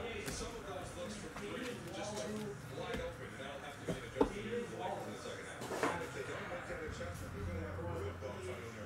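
Trading cards tap and rustle against a table.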